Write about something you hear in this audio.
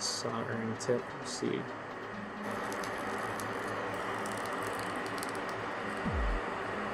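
A soldering iron sizzles faintly as solder melts.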